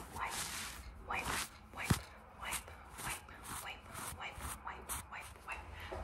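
A young woman makes soft kissing sounds with her lips.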